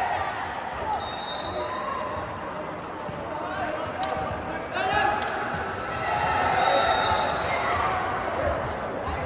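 Young men shout and cheer together in a large echoing hall.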